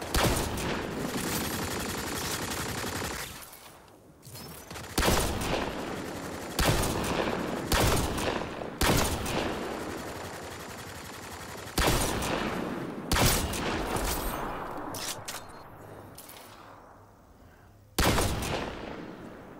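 Rifle shots fire loudly and echo away, one at a time.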